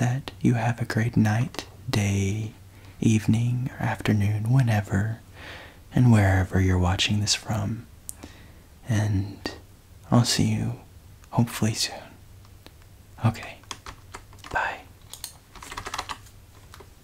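A young man speaks softly close to a microphone.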